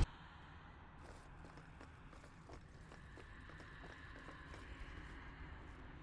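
Footsteps tap on a stone floor in an echoing hall.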